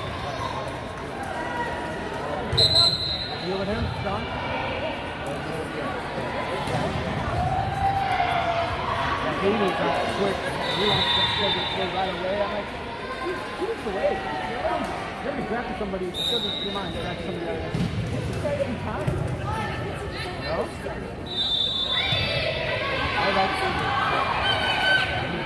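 A crowd of young women chatter and call out in a large echoing gym.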